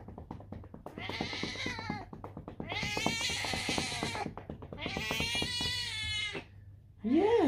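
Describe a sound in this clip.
A cat meows loudly and repeatedly.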